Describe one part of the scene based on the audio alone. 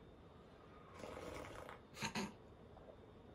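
A man bites into juicy watermelon with wet crunching slurps.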